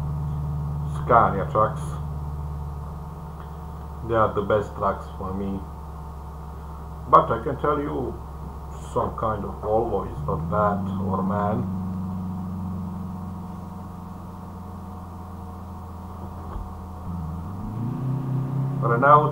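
A man talks calmly into a close microphone.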